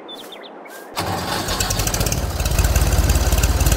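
A tractor engine rumbles loudly and revs up.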